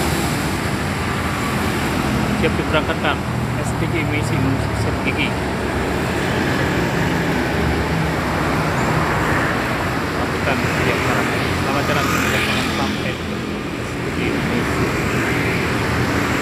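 Motorbikes buzz past.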